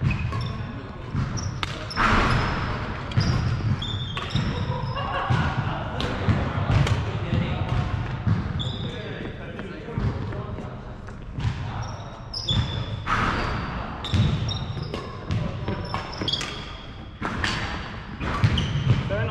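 Rackets hit a shuttlecock back and forth in a large echoing hall.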